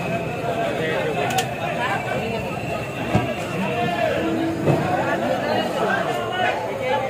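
A busy crowd of men and women chatters nearby.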